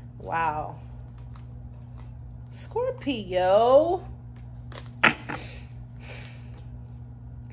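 Playing cards shuffle and slap softly onto a table.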